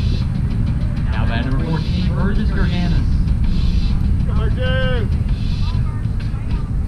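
Young men shout and call out across a field in the distance.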